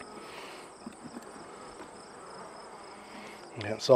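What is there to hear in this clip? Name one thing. A wooden frame scrapes against a hive box.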